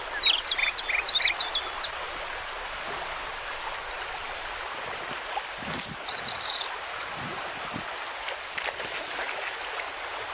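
A shallow stream flows and murmurs softly.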